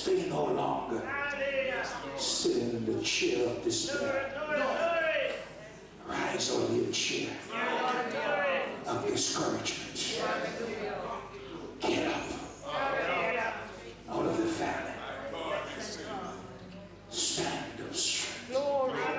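A middle-aged man preaches with animation through a microphone and loudspeakers.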